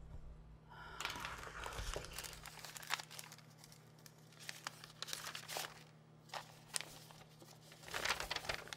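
A thin plastic sheet crinkles and rustles close by.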